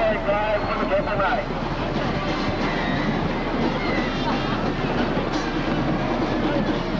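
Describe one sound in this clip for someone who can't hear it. A crowd of people cheers and shouts outdoors at a distance.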